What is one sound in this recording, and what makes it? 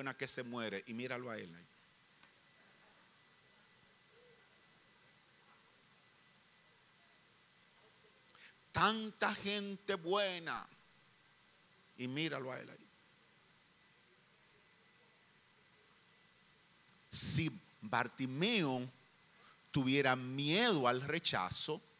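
A middle-aged man preaches with animation through a microphone, with long pauses.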